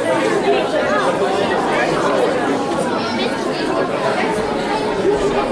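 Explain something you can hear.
A crowd of children and adults chatter and call out in a large echoing hall.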